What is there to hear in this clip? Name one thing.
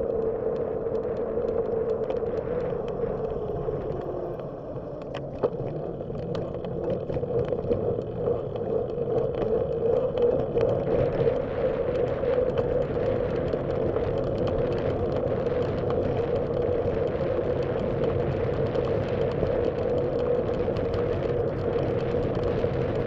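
Road noise rumbles from the tyres on the street.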